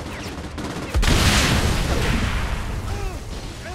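A large explosion booms and roars, then slowly fades.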